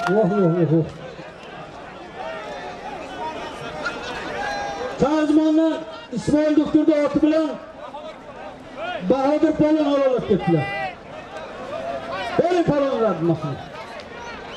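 Men in a crowd shout loudly.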